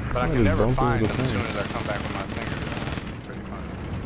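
A loud explosion bursts nearby.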